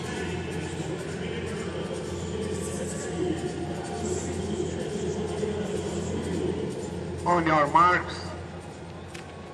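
A large stadium crowd murmurs and cheers loudly, then goes quiet.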